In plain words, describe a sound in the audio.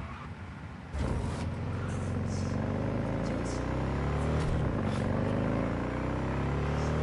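A motorcycle engine roars and its pitch climbs steadily as it speeds up.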